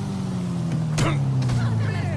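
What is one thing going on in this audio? A punch lands with a sharp thud.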